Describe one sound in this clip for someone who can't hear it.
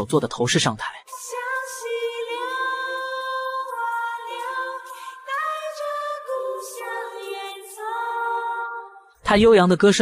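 A woman sings a slow melody into a microphone.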